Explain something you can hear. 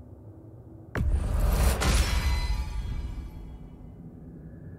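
A loud rushing burst swells and slowly fades.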